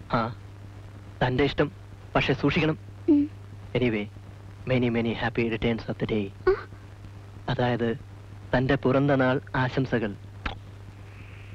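A man speaks softly and close by.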